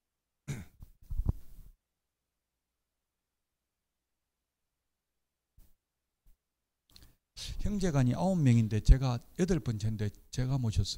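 A middle-aged man lectures calmly into a microphone.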